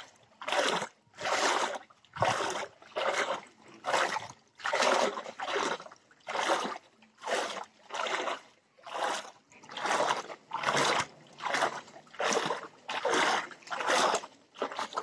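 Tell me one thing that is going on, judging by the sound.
Footsteps splash steadily through shallow water.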